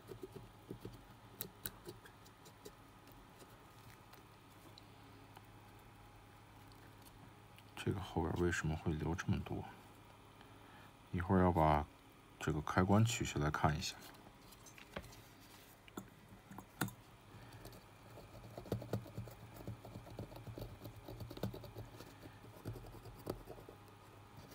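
Small plastic clicks and light taps come from a circuit board being handled.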